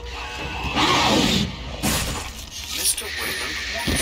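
Sharp claws slash wetly into flesh.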